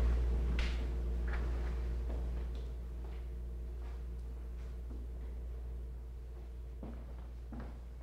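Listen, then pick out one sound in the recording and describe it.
Footsteps walk softly.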